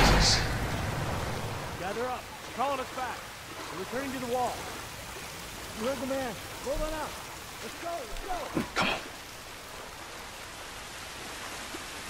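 Water splashes steadily as a person wades through it.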